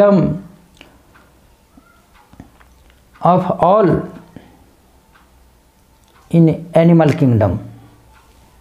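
An elderly man speaks calmly and slowly, in short phrases with pauses, close to a microphone.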